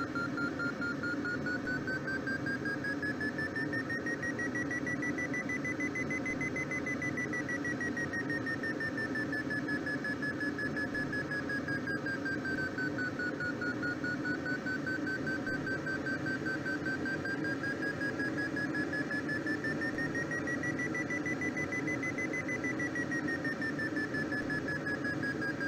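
A glider's climb indicator sounds a steady tone that slowly rises and falls in pitch.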